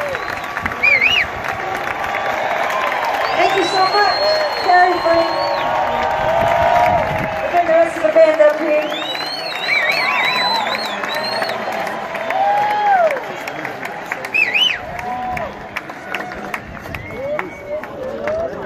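People in a crowd whistle loudly.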